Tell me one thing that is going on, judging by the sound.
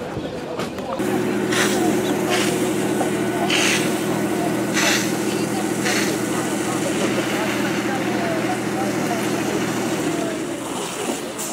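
A fire engine's pump hums steadily.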